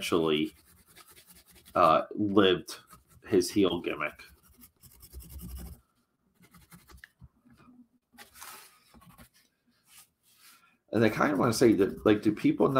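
A pencil scratches softly across cardboard.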